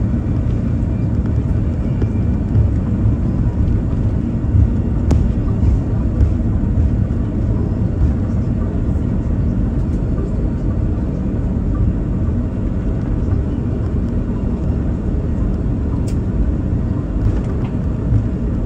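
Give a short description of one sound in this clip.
An aircraft cabin rumbles steadily as a plane rolls along a runway.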